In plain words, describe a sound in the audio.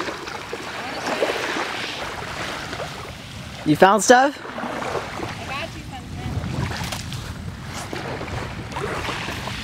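Small waves lap gently at a sandy shore.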